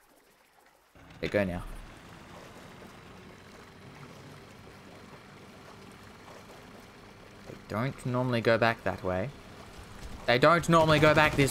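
A small outboard motor hums steadily.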